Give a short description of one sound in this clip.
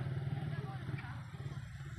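People chatter outdoors at a distance.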